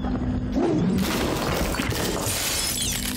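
A glassy figure shatters with a crisp crash.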